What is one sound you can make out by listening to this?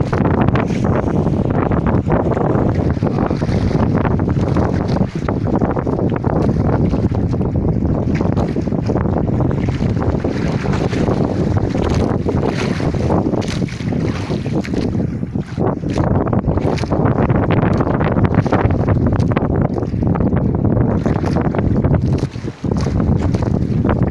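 Choppy waves slap against the side of a small boat.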